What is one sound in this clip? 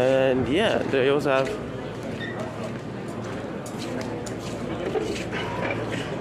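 A crowd of people murmurs and chatters in a large hall.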